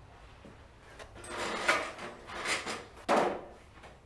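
A briefcase is set down on a table with a thud.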